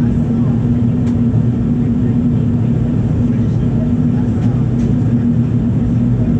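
A jet engine roars steadily with a low, droning hum.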